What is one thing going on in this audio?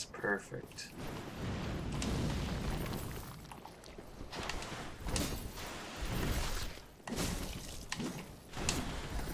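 A sword swings and strikes with sharp metallic hits.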